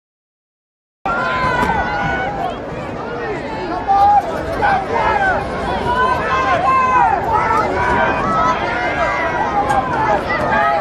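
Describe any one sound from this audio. A crowd in the stands cheers and chatters.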